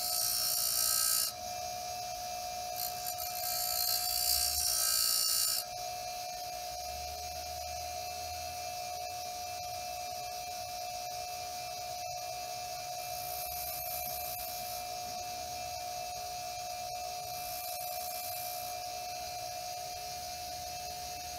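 A bench grinder motor hums steadily.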